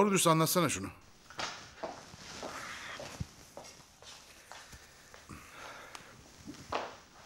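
Footsteps move across a wooden floor.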